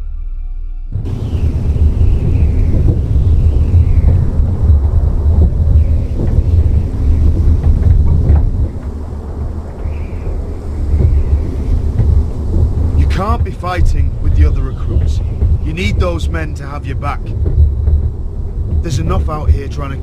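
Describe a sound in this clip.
Wind roars steadily outdoors.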